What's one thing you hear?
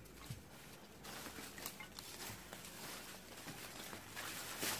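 Leaves rustle.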